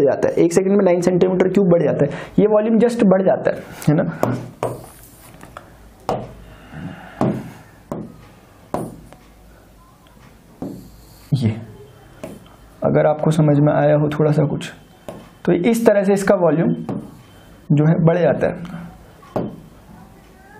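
A man speaks calmly and clearly into a nearby microphone, explaining in pauses.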